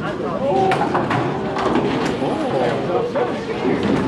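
Bowling pins crash and clatter as a ball strikes them.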